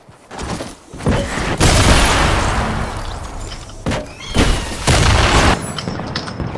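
A second loud blast roars and then cuts off.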